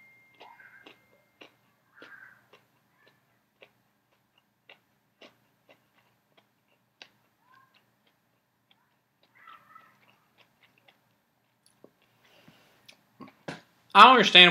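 A man chews food with soft crunching.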